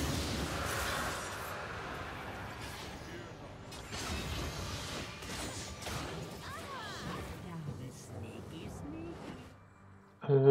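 Magic blasts and impacts crackle and whoosh in a fast fight.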